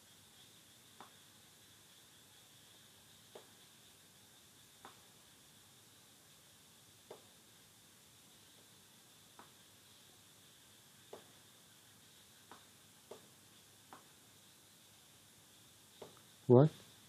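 A computer mouse clicks sharply now and then.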